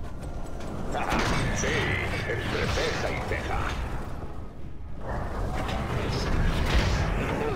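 Battle effects in a game clash and burst with fiery blasts.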